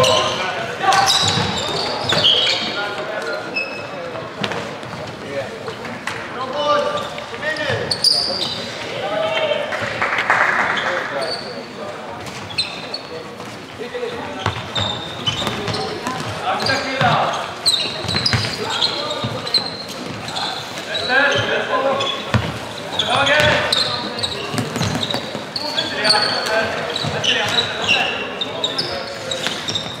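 Young men shout calls to each other across an echoing hall.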